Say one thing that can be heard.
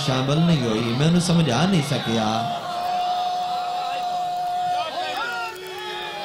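A man speaks forcefully through a microphone and loudspeakers, with animation.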